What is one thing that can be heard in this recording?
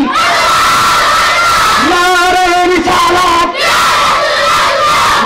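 A young man sings loudly into a microphone, heard through loudspeakers.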